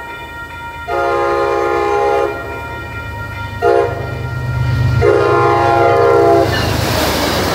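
A train horn blows loud, long blasts close by.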